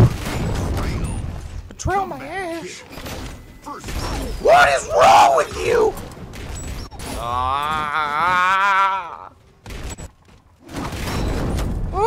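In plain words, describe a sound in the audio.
Gunfire bursts from a rifle in a game.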